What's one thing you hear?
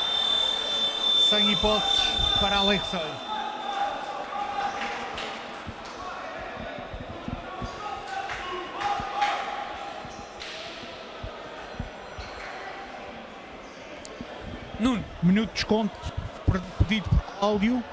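Men shout and cheer in an echoing hall.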